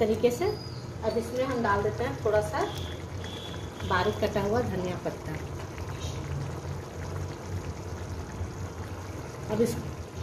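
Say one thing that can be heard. A thick sauce bubbles softly in a pan.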